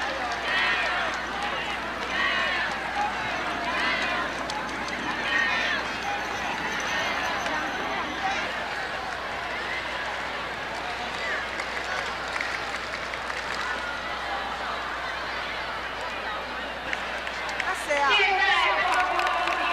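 A crowd murmurs in the stands of a large open stadium.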